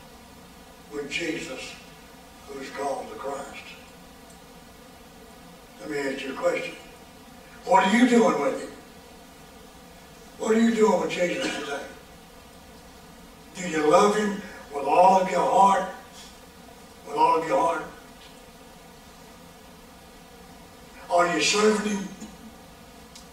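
An elderly man speaks slowly and earnestly into a microphone, with long pauses.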